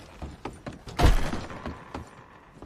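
Saloon doors swing and bang open.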